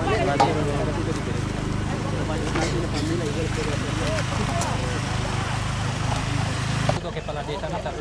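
Men talk and chatter outdoors.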